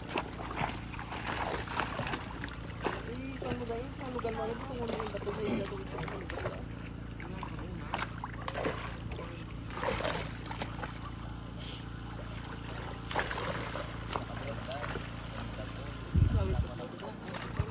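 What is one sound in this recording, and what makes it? Water splashes and gurgles close by.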